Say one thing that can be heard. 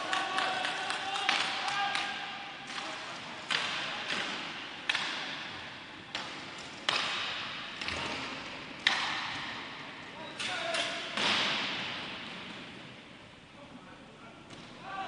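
Skate wheels roll and scrape across a hard floor.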